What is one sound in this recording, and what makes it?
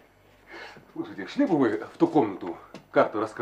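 A man speaks emphatically close by.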